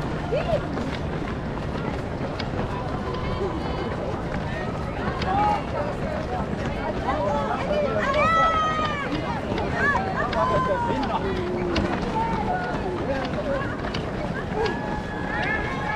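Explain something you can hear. Many runners' footsteps patter on stone paving.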